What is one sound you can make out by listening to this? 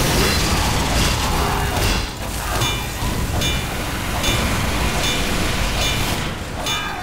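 A wrench clangs against metal in a steady, repeated rhythm.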